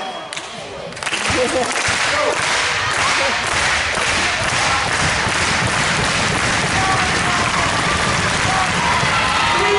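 A basketball bounces rhythmically on a wooden floor.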